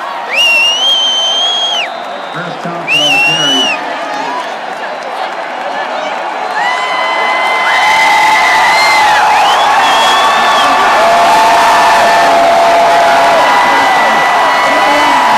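A large stadium crowd roars and cheers, swelling loudly.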